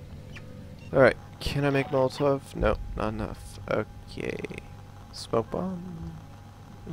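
Electronic menu tones beep in quick succession.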